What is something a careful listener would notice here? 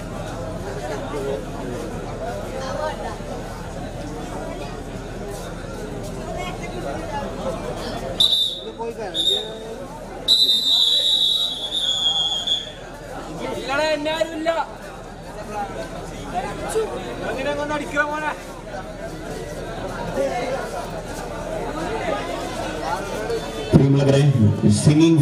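A large crowd of men chatters and murmurs nearby.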